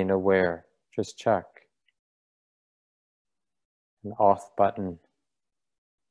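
A middle-aged man speaks calmly in short phrases, close to a microphone.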